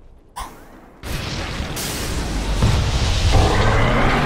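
Magic spells crackle and rumble in a fight.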